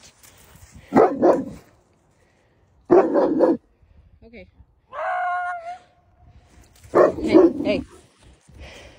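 A large dog barks.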